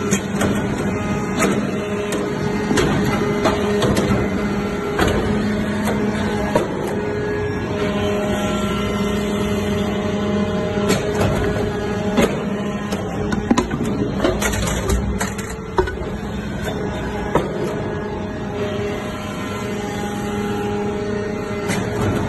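Metal clanks and knocks sharply now and then.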